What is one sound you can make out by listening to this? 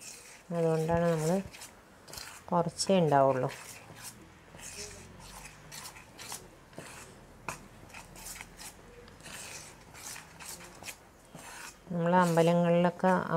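A spoon scrapes and stirs flour in a metal bowl.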